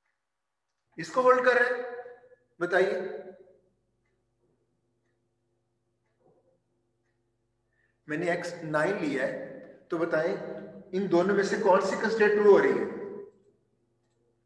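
A man speaks calmly through a microphone, as if explaining, with pauses.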